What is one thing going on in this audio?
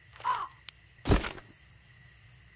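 A wooden coffin lid thuds open.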